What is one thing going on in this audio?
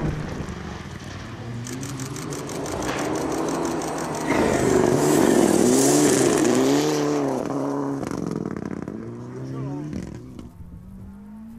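A second rally car engine revs hard as it approaches and passes close by.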